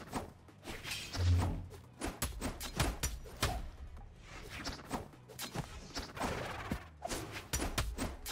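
Game fighters' weapons clash and swoosh in quick hits.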